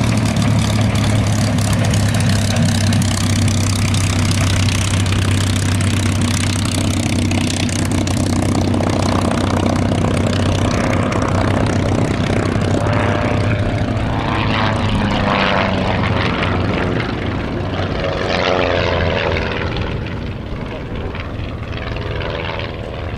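A propeller plane's engine roars loudly and steadily close by, slowly fading as the plane taxis away.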